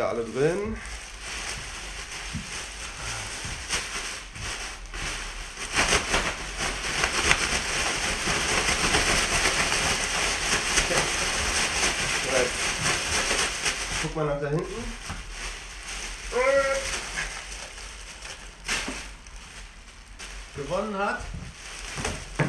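A plastic bag rustles and crinkles loudly close by.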